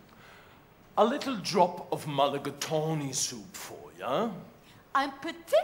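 A man speaks loudly with animation in a hall with some echo.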